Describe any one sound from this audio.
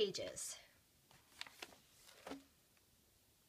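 A large sheet of paper rustles as it is lifted and set down.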